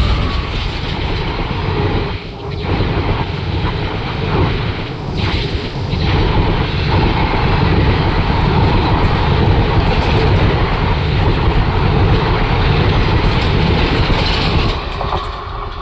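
Passenger coaches rattle and clatter past on steel rails at speed.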